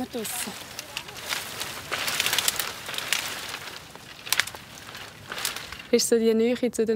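Dry branches crackle and snap as someone pushes through brush.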